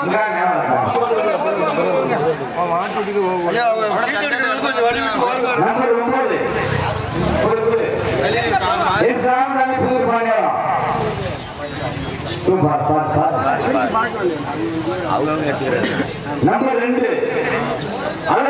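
An elderly man speaks steadily into a microphone, heard through a loudspeaker.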